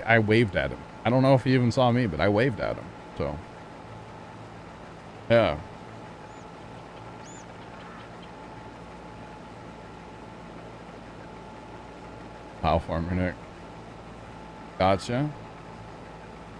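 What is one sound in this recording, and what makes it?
A harvester engine hums steadily.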